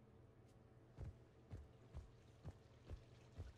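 Footsteps thud in an even rhythm.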